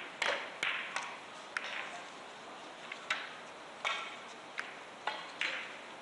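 Billiard balls click against each other and knock off the cushions.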